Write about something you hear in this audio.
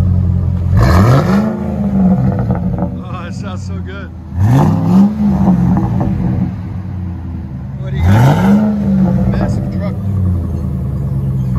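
A diesel truck engine idles with a deep, loud exhaust rumble.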